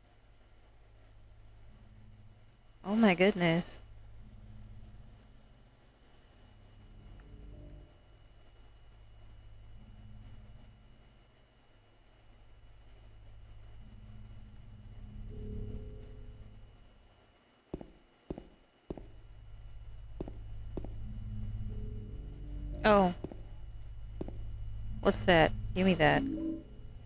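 A young woman talks quietly into a close microphone.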